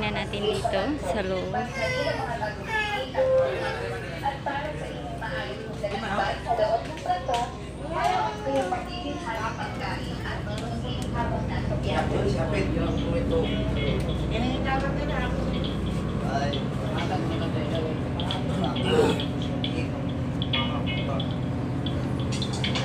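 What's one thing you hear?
A ship's engine hums steadily.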